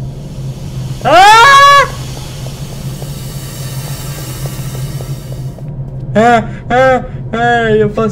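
A man shouts in a high, strained voice close to a microphone.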